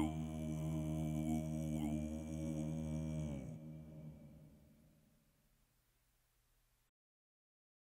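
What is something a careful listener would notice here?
A man sings in a deep, steady droning voice that then fades away.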